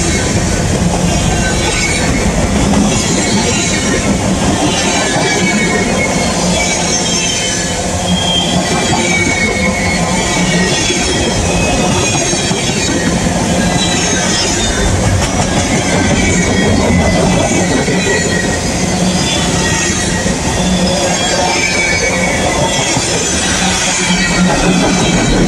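A freight train rumbles past close by, loud and steady.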